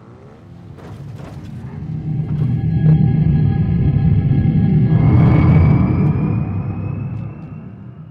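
A vehicle engine roars as it drives past.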